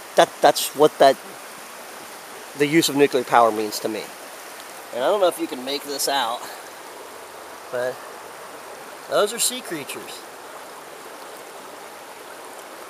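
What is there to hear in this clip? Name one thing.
Shallow water trickles gently over rocks.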